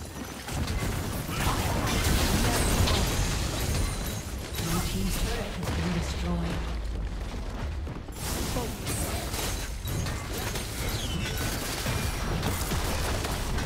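Spell blasts and hits crackle and clash in a game battle.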